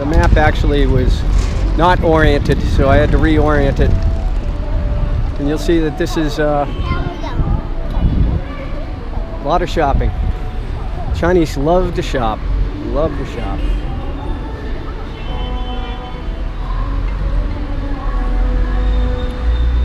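City traffic rumbles steadily in the background outdoors.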